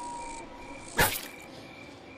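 A heavy blow lands with a sharp thud.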